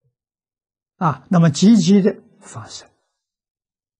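An elderly man speaks calmly and clearly through a close microphone.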